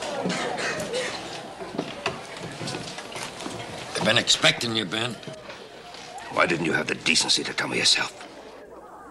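A middle-aged man speaks in a low, firm voice close by.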